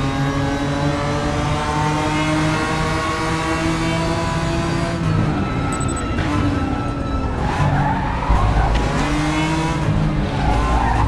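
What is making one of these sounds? A racing car engine roars at high revs, shifting gears and rising and falling in pitch.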